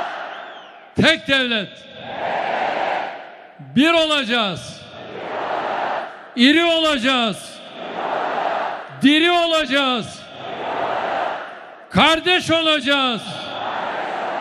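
A large crowd chants a short slogan in unison, over and over, in a big echoing hall.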